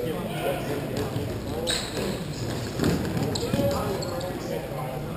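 Hockey sticks clack against a ball and the floor.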